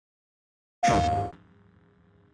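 A short electronic startup chime sounds.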